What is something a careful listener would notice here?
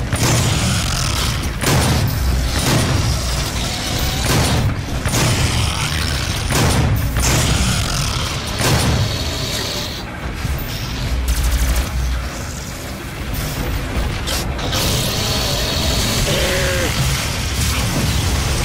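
Heavy guns fire in loud, booming blasts.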